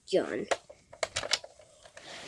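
A plastic toy blaster knocks and clicks as it is handled.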